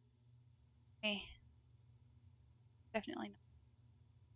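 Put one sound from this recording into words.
A young woman speaks briefly into a microphone, close by.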